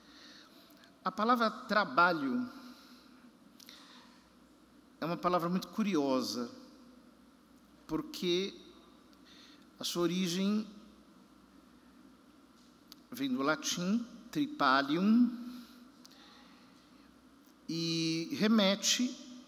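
A man speaks slowly and calmly into a microphone, with pauses, in a reverberant hall.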